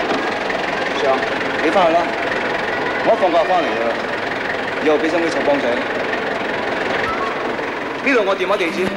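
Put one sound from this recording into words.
A man speaks calmly from inside a car.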